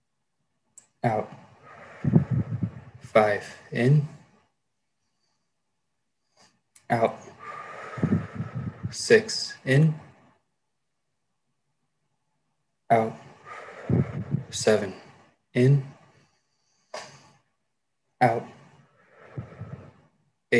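A young man speaks calmly over an online call, in short bursts with pauses.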